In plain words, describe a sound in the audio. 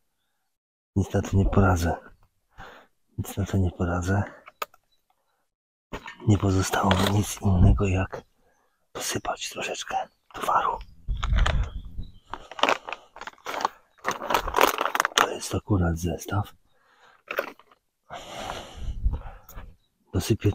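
A man talks calmly and close up, with pauses.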